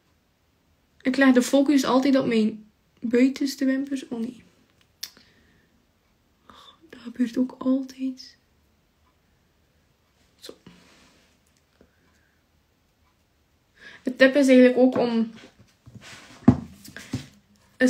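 A young woman talks calmly and close to a microphone, with pauses.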